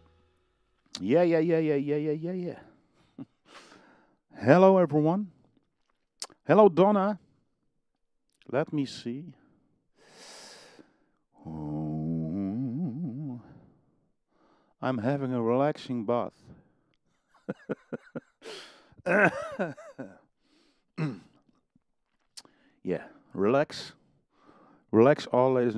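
A man talks into a close microphone with animation, in bursts.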